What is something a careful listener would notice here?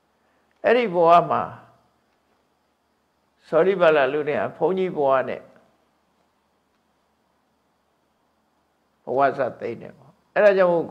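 An elderly man speaks slowly and calmly in short phrases, close to a microphone.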